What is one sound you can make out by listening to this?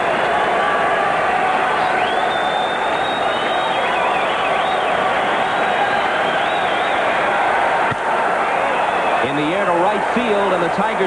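A large crowd roars steadily in a big echoing stadium.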